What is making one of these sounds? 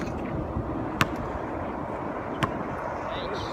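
A basketball bounces sharply on a hard outdoor court.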